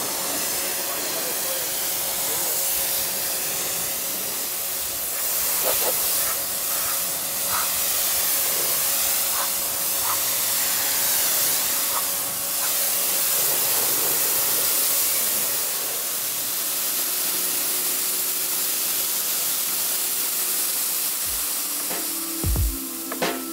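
A pressure washer sprays water in a loud, steady hiss against a car.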